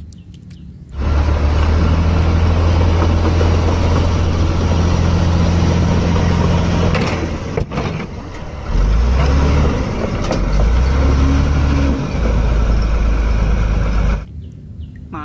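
Bulldozer tracks clank and grind through dirt.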